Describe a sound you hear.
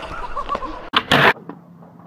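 A skateboard clacks sharply against a concrete ledge.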